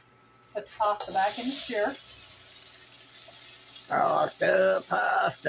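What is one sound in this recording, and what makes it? Pasta and water pour from a colander into a pot.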